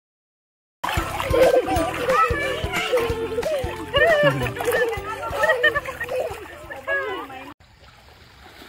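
Water splashes in a pool.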